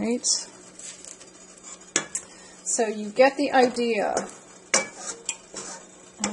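A wooden spoon scrapes and knocks against a metal bowl.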